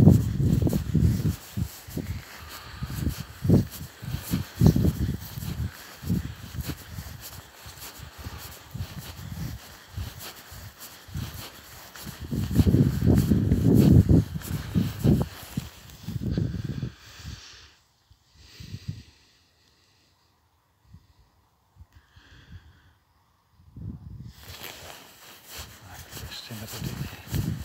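Bare feet tread through grass.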